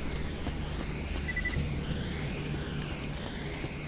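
A vehicle engine hums in the distance.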